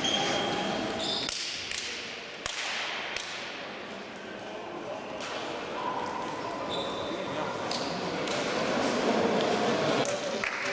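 Sneakers squeak on a hard indoor court.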